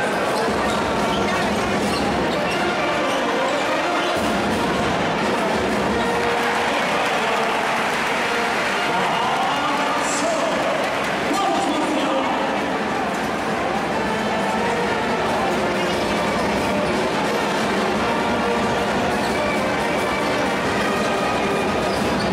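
A large indoor crowd cheers and chants steadily in an echoing arena.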